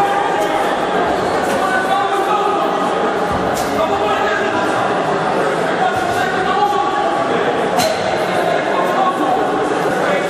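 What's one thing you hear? A man talks with animation to a group of boys in an echoing hall.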